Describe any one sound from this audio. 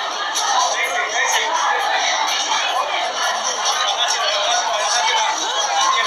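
A crowd of men and women shouts and cheers loudly.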